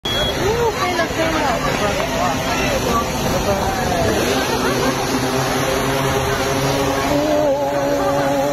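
A drone's rotors buzz steadily overhead.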